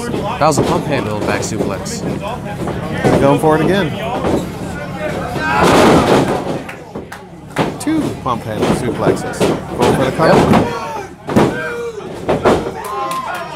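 A crowd of men and women shouts and cheers nearby.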